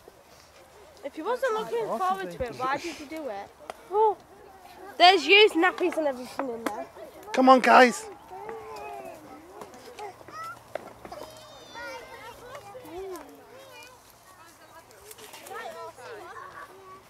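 Young children shout and call out excitedly nearby.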